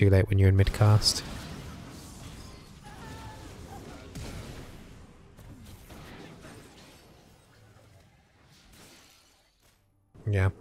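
Game sound effects whoosh and clash.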